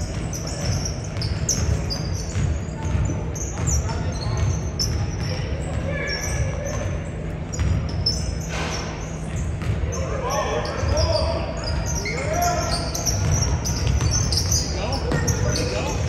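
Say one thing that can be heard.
Sneakers squeak sharply on a gym floor, over and over.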